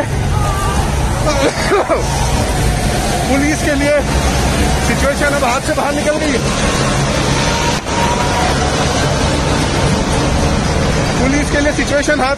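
Men shout and cheer with excitement.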